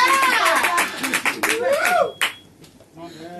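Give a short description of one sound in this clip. Drums crash and thump.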